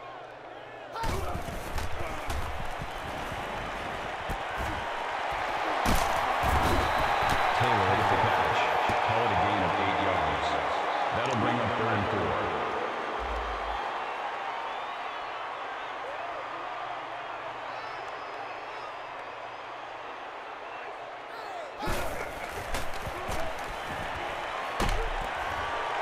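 Football players' pads crash together in hard tackles.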